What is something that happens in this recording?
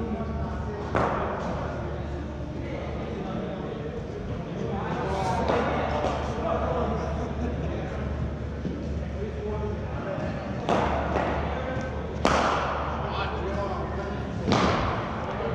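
Cricket balls crack sharply off a bat, echoing in a large hall.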